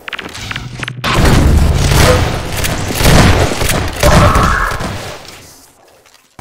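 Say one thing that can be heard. Guns fire in rapid bursts of loud shots.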